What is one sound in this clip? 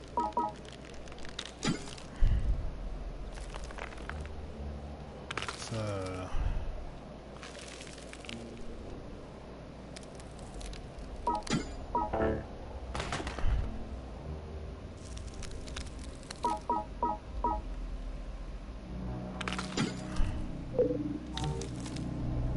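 Short electronic beeps sound as a game menu selection moves.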